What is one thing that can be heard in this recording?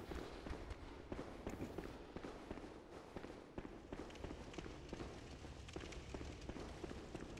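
Footsteps run quickly over stone in an echoing space.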